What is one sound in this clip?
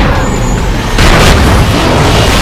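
A crash and blast ring out as a car is hit.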